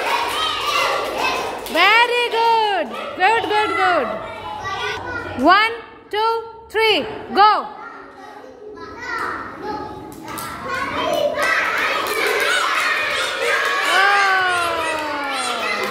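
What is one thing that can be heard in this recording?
Young children shout and squeal excitedly nearby in an echoing room.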